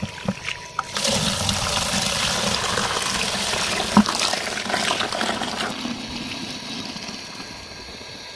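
Water gushes from a hose into a plastic bucket.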